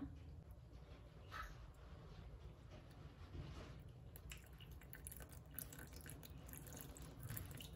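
Water pours into a bowl.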